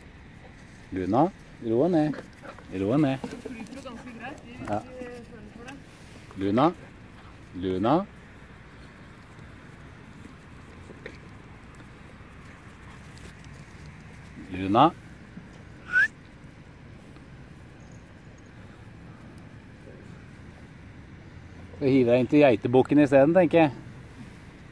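A young dog yaps and barks excitedly nearby.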